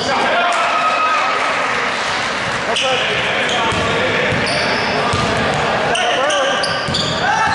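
A crowd in a large echoing gym cheers and chatters.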